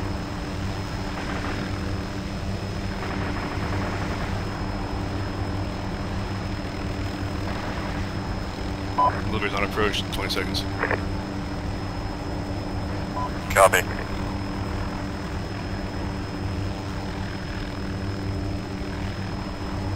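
A helicopter's rotor thumps and its engine drones steadily.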